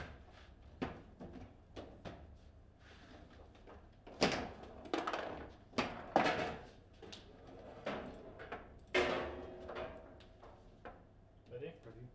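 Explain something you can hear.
Foosball rods clack and slide as they are spun.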